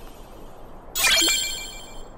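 A bright chime sounds as an item is collected.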